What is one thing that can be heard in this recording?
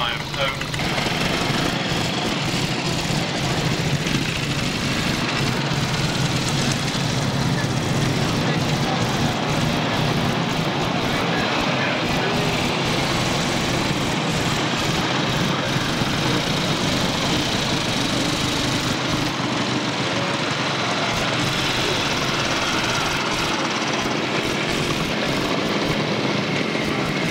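Motorcycle engines idle and rumble close by, outdoors.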